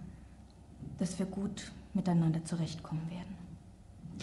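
A woman speaks firmly and close by.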